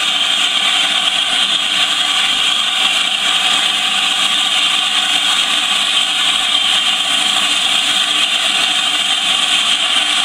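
Steam hisses steadily from a standing steam locomotive close by.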